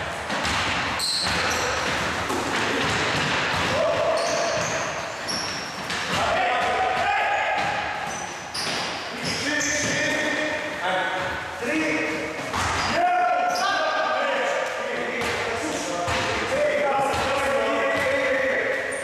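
Sneakers squeak on the floor.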